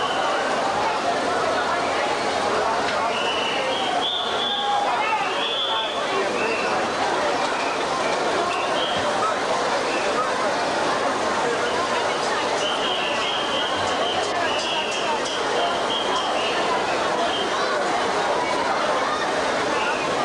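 A large crowd chatters and cheers loudly.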